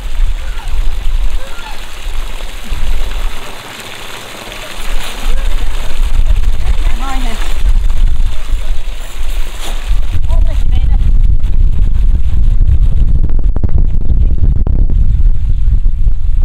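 A man splashes about in the water.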